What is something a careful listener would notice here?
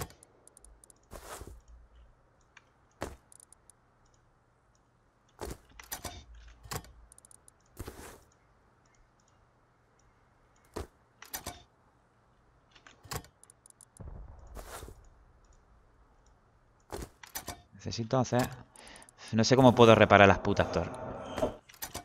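Game menu clicks and item sounds come and go.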